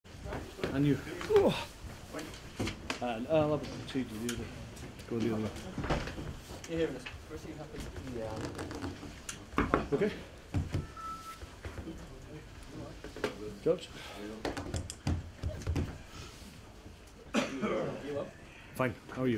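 A middle-aged man speaks calmly into microphones.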